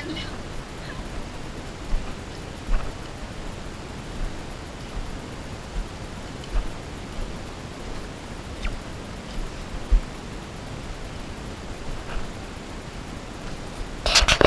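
Footsteps crunch on dry leaves and dirt along a trail.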